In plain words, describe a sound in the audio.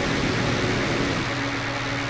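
A laser beam hums steadily.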